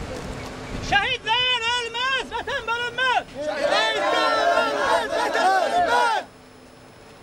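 A crowd of men chants loudly outdoors.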